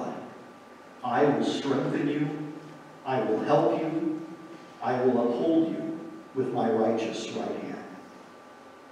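A man speaks or chants slowly through a microphone in a large echoing hall.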